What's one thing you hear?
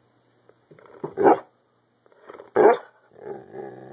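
A dog barks sharply.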